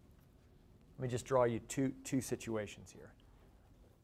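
A man speaks briefly and clearly through a clip-on microphone.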